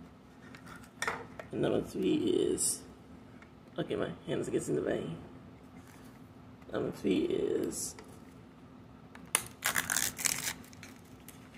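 Hands crinkle and peel a thin plastic wrapper close by.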